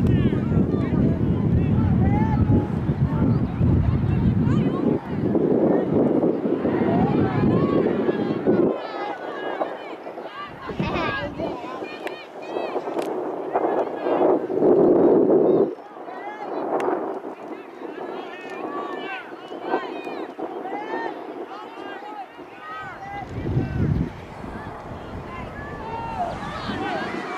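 Men and women on the sidelines talk and call out at a distance.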